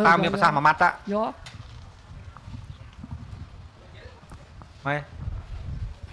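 A middle-aged man speaks into a microphone, addressing a room.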